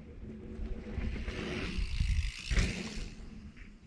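A bicycle rushes past close by through the air.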